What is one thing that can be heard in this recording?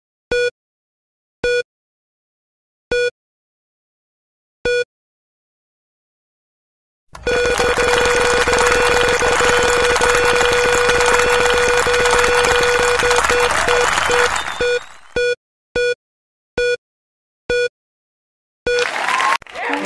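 Short electronic beeps sound at a steady pace.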